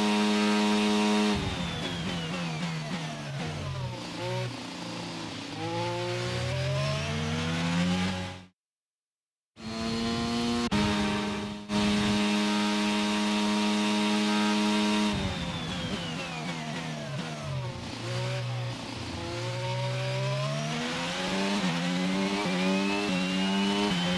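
A racing car engine screams at high revs, drops in pitch as the driver brakes and shifts down, then rises again as it speeds up.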